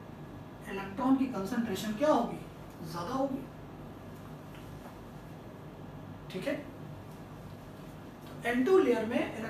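A man speaks calmly and clearly, as if explaining, in a room with a slight echo.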